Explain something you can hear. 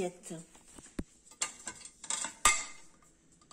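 Ceramic plates clink and knock against each other.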